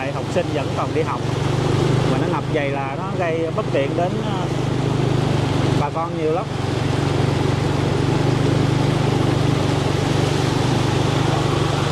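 Water splashes and sprays under motorbike wheels.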